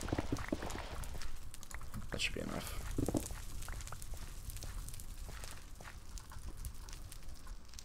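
Fire crackles softly.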